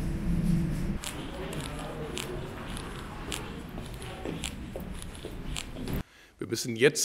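Footsteps and murmuring echo through a large hall.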